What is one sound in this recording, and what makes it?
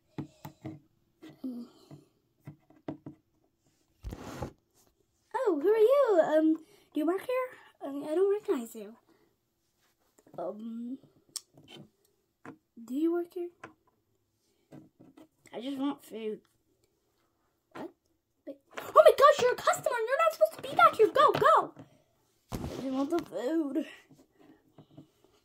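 Small plastic toys tap and scrape on a table.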